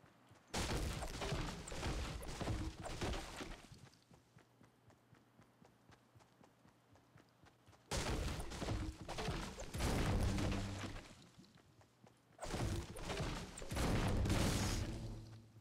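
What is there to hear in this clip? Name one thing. A pickaxe strikes wood with repeated dull thuds.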